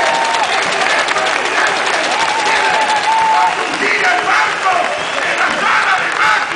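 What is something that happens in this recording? Many people clap their hands.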